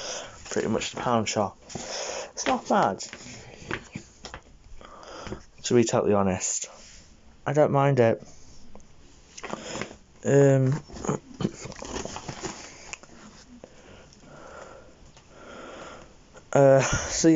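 A plastic shopping bag rustles and crinkles as it is handled.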